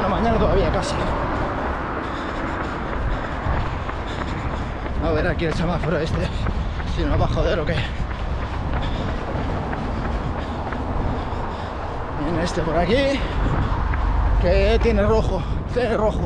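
An adult man talks breathlessly while running, close to the microphone, outdoors in wind.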